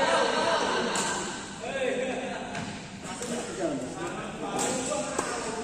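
Men talk and call out in an echoing hall.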